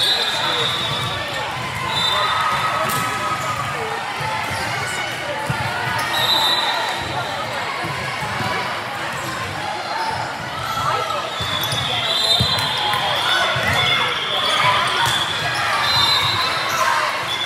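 Many voices of girls and young women chatter and call out in a large echoing hall.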